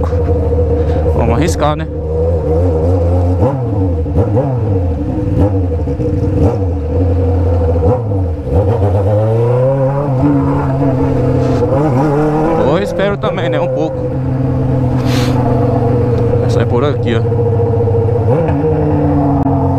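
An inline-four Honda Hornet motorcycle with a straight-pipe exhaust revs and pops as it rides through traffic.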